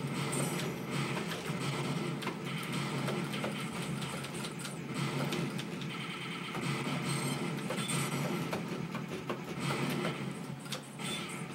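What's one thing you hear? Electronic game music plays steadily through a loudspeaker.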